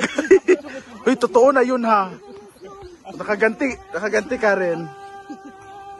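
A young woman laughs loudly nearby.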